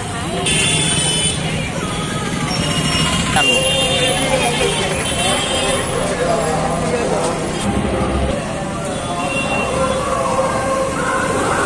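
A crowd of men and women chatters nearby.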